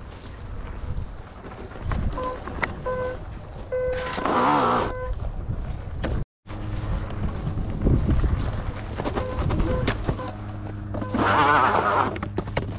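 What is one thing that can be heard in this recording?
An electric one-wheeled board whirs as it rolls over dirt and dry grass.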